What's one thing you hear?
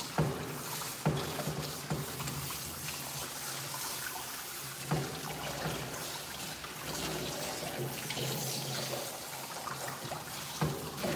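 Water sprays and splashes steadily from a hand shower.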